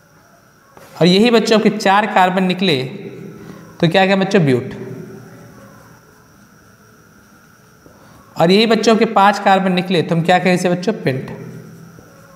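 A young man speaks clearly and with emphasis nearby.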